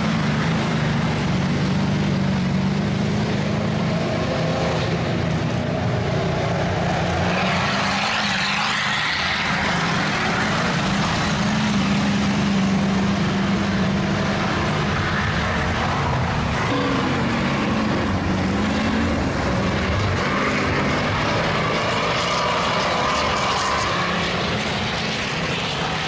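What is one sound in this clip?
Truck engines roar and rev through a loudspeaker.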